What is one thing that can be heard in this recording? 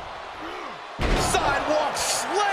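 A heavy body slams onto a wrestling ring mat with a loud thud.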